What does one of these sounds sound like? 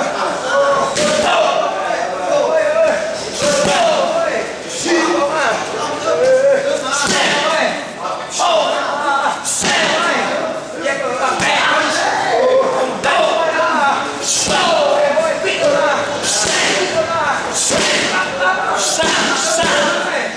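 Gloved punches and kicks smack sharply against padded mitts and a belly pad.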